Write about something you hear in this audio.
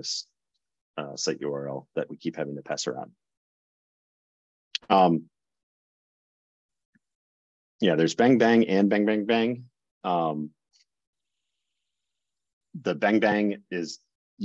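An older man talks calmly into a close microphone, in bursts with pauses.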